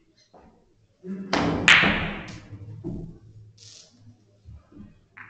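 Billiard balls click against each other and thud off the cushions.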